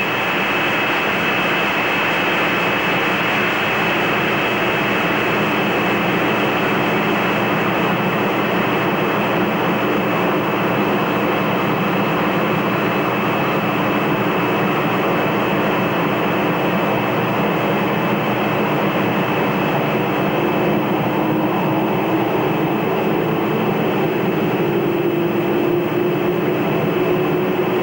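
Jet engines roar steadily as a large plane rolls close by.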